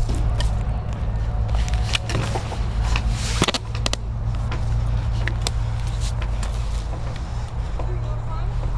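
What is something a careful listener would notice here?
Hands and shoes rub and knock against a metal pole.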